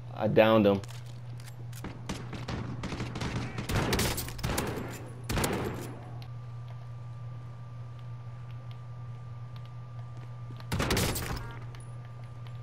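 Gunshots fire in rapid bursts, loud and close.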